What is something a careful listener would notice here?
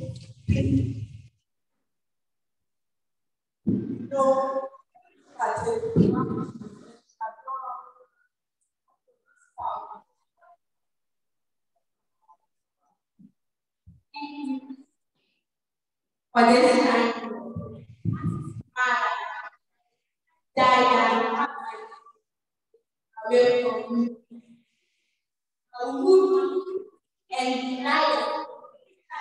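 A woman speaks into a microphone with feeling, in short bursts, in an echoing hall.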